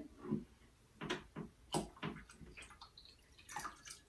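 Glass clinks softly against glass.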